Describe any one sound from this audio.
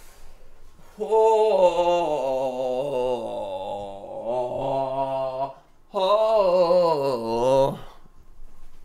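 A young man sings loudly and dramatically close to a microphone.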